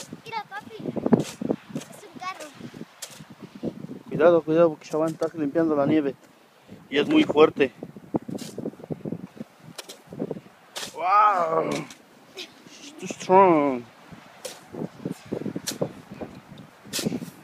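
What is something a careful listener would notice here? A shovel scrapes and pushes through snow.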